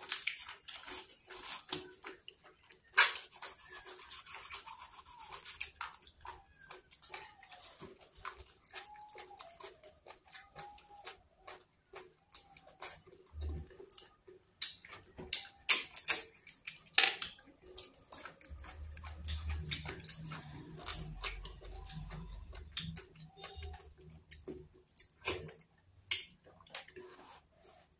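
Soft, sticky food squelches as hands knead and tear it.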